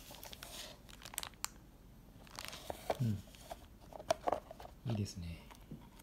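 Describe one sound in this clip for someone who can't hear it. Thin plastic packaging crinkles and clicks as it is handled.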